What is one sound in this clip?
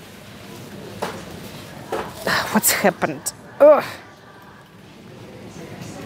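A shopping cart rolls over a tiled floor.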